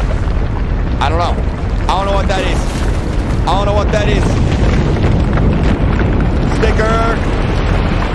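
A young man exclaims excitedly into a microphone, close by.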